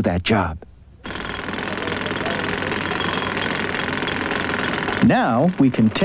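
A jackhammer pounds loudly into pavement.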